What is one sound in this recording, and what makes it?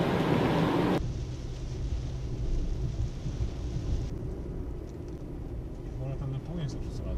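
A car engine hums low while driving on a wet road.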